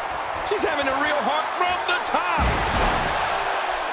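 A body slams heavily onto the wrestling mat.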